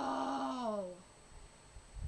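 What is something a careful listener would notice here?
A young woman speaks close to the microphone, her voice trailing off.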